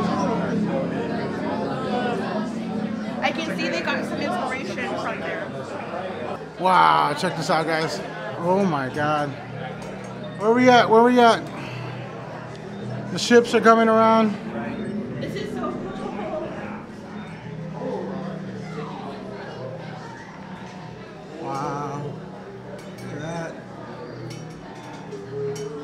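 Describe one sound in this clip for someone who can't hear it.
A crowd of people murmurs and talks nearby.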